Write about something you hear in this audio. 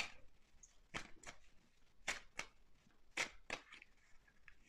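Cards are shuffled and flicked with soft crisp clicks.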